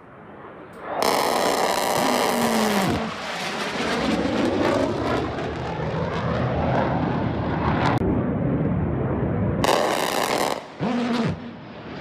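A jet fighter roars loudly overhead.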